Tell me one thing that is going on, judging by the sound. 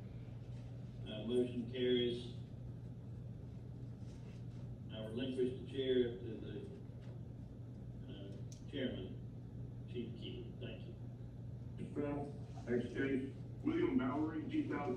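A man speaks calmly in short bursts with pauses.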